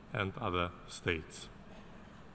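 A man speaks briefly through a microphone in a large hall.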